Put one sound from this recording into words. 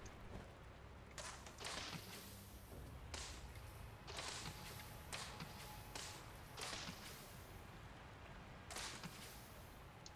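Footsteps crunch on dry leaves and ground.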